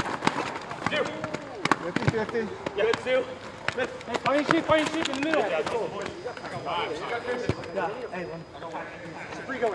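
Young men shout and call out to each other during a game outdoors.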